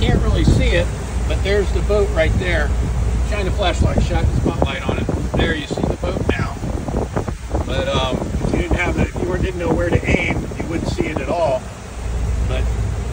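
A boat engine rumbles low and steadily.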